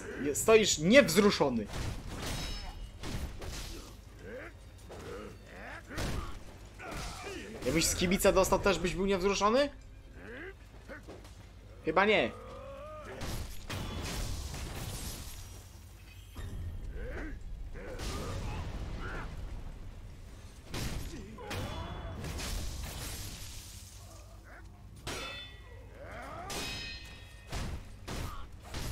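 Men shout and grunt as they fight.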